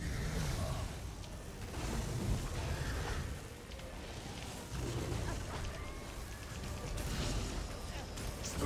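Magic spells crackle and zap in a fight.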